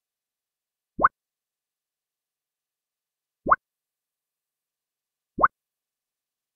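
A short rising electronic blip sounds as game dialogue moves on.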